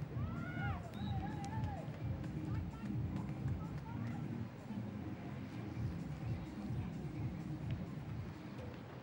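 A crowd murmurs and cheers in the distance.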